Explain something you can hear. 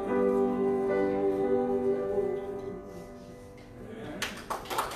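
A piano plays in a large room.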